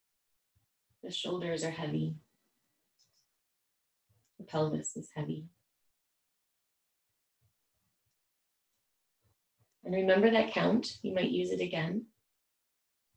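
A woman speaks calmly and softly in short phrases with long pauses.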